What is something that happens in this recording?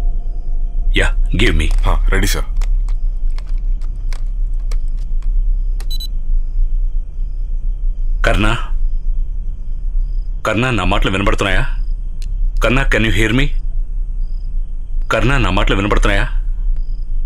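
A man speaks in short, tense phrases nearby.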